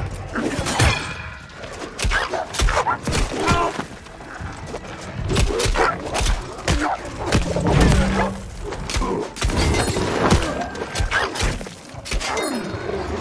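Weapons clash and strike in a fast fight.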